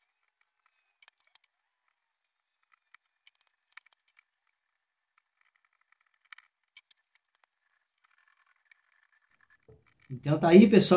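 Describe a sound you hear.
A wooden stick scrapes and taps inside a glass jar.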